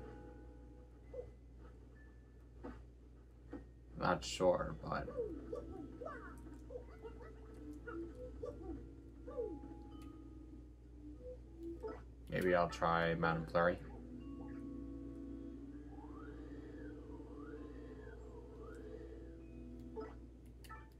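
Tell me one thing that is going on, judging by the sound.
Chiming video game sound effects play from a television speaker.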